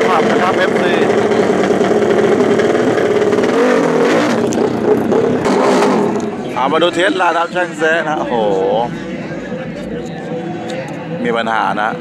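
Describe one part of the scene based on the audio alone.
A motorcycle engine revs loudly up close.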